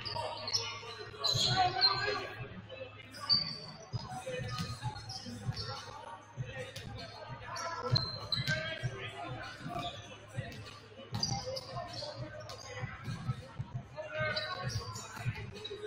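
Shoes squeak on a gym floor.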